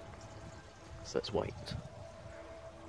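Water gushes and gurgles into a toilet bowl outdoors.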